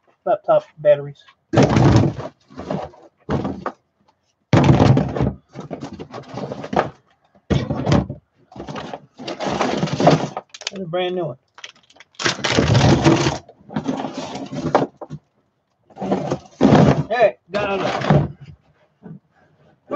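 Objects clatter and knock inside a plastic bin.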